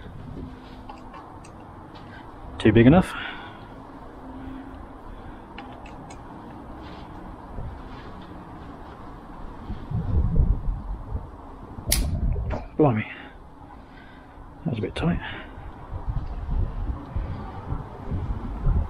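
A metal multi-tool clicks and clinks as it is folded in the hands.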